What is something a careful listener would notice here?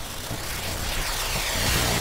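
A sword swooshes through the air in a heavy slash.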